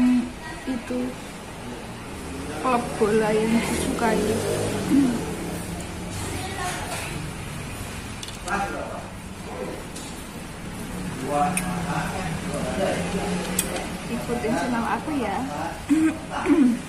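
A young woman talks casually, close by.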